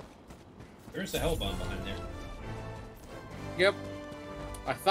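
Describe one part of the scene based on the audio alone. A short triumphant fanfare plays.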